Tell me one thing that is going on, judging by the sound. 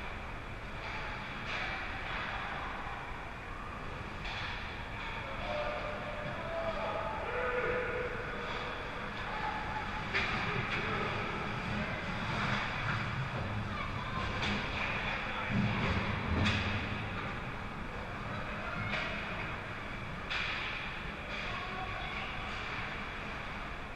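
Skate blades scrape and hiss across the ice in a large echoing rink.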